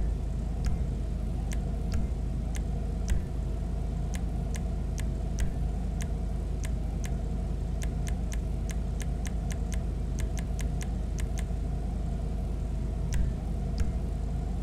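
Short menu clicks tick, sometimes in quick runs.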